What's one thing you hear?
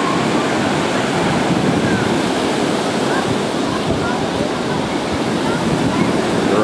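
Ocean waves crash and roll steadily onto a beach outdoors.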